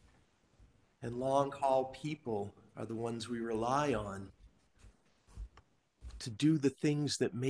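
A man speaks calmly into a microphone, heard through a room's sound system.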